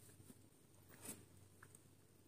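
A ceramic cup clinks.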